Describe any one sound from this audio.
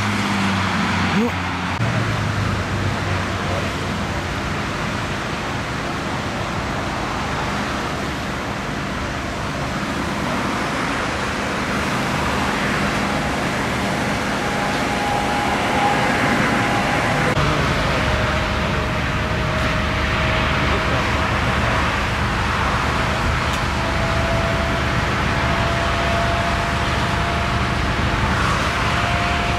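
Traffic rushes steadily past on a wet road.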